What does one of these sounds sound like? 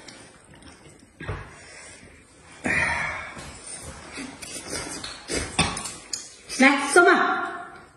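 A man slurps and chews noodles noisily.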